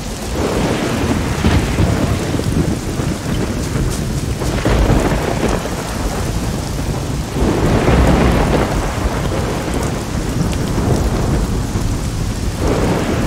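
Rain falls steadily on leaves.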